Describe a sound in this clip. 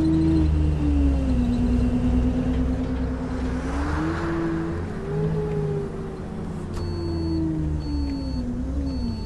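A bus engine drones steadily, its pitch rising and falling as it speeds up and slows down.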